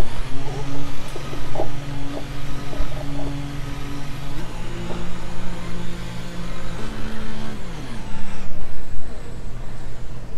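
A racing car engine idles and drops in pitch as the car slows.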